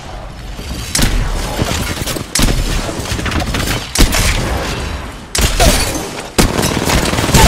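Rapid gunfire rattles loudly, close by.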